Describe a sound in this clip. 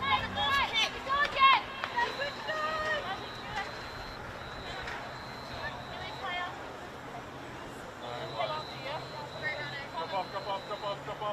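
Young women shout and call to each other across an open outdoor pitch.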